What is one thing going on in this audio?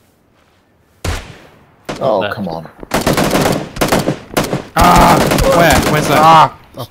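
Rifle shots crack loudly and close.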